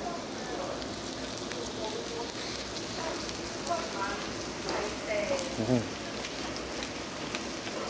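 A young man chews food with crunching sounds.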